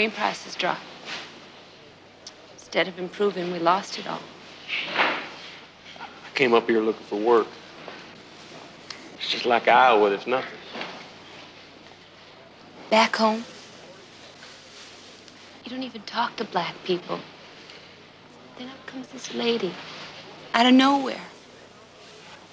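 A woman speaks softly and emotionally nearby.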